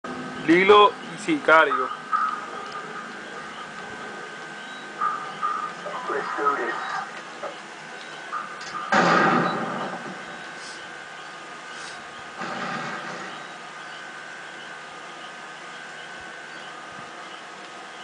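Gunfire and game sounds play from a television speaker.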